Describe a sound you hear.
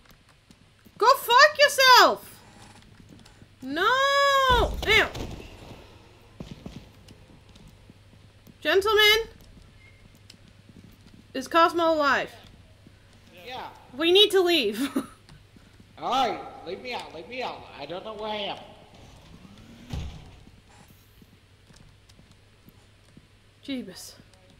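A young woman talks and exclaims with animation, close to a microphone.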